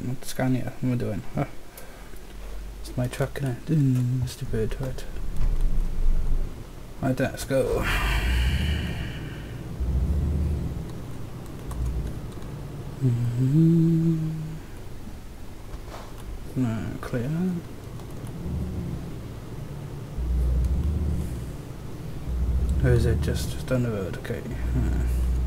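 A truck engine rumbles low and steady, swelling now and then.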